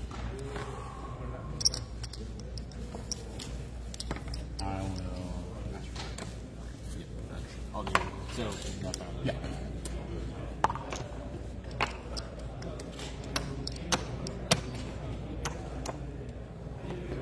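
Men talk calmly nearby.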